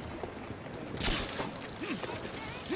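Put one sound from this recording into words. A grappling line fires with a sharp whoosh.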